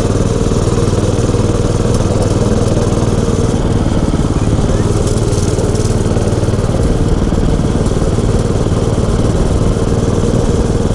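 A small motor engine drones steadily up close.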